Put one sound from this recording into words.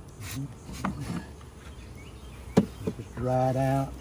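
A wooden hive frame knocks against a box.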